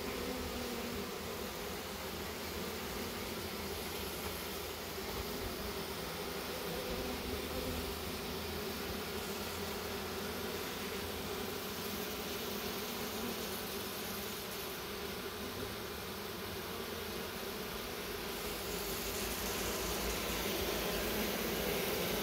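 A dense swarm of bees buzzes steadily up close.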